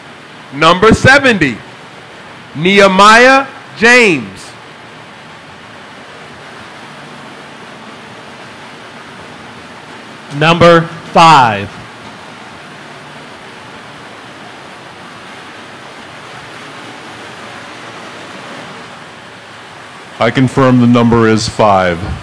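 An older man speaks loudly into a microphone, echoing through a large hall.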